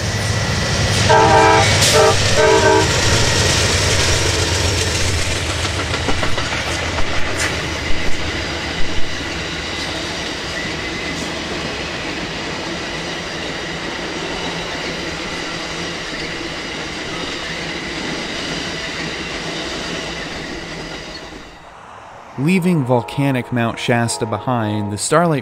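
A train horn blasts.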